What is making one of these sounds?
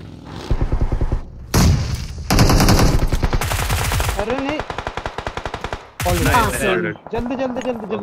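Automatic gunfire rattles in loud, rapid bursts.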